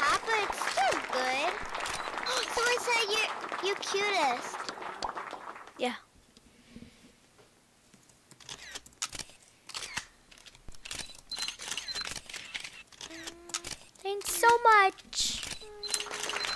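A young girl talks with animation into a microphone, close up.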